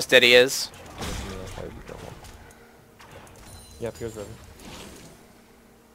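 Magic blasts and weapon hits ring out in a fast video game battle.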